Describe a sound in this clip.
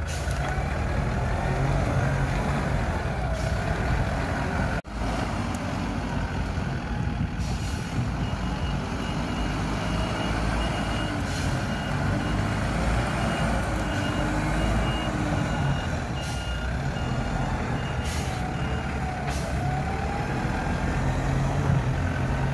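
A diesel engine rumbles steadily as a vehicle drives over rough ground.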